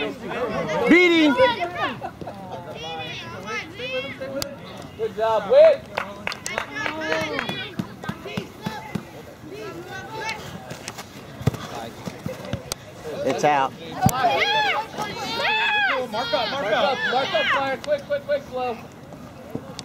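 Nearby spectators shout and cheer outdoors.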